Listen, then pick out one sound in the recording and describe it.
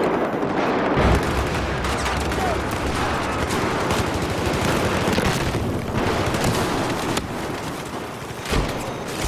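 Rapid gunfire rattles and echoes.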